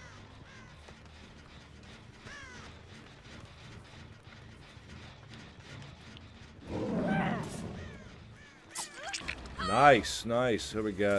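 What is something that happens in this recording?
A man talks through a close microphone, then shouts loudly and excitedly.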